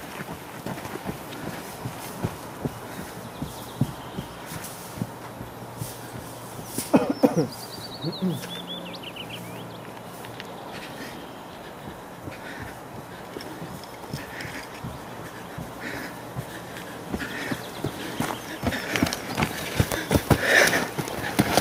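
Footsteps thud on the ground as a man runs.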